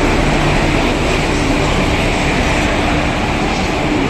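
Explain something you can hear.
A locomotive engine hums loudly as it passes close by.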